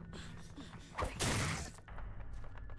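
A loud burst of a heavy blow rings out.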